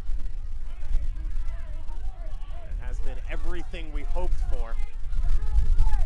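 A crowd murmurs and cheers outdoors.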